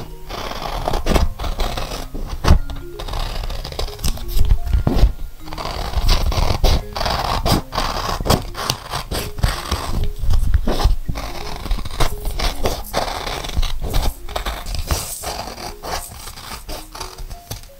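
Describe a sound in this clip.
Scissors snip through paper close by.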